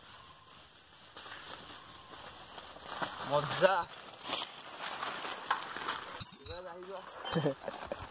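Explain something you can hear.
A bicycle rolls over dry leaves and rattles on a rough trail.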